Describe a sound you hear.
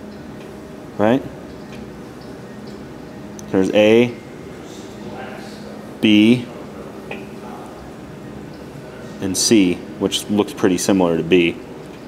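A man speaks in short bursts, close by.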